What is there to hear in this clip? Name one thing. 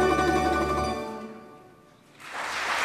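A mandolin and guitar orchestra plays a final chord that rings out and fades in a large hall.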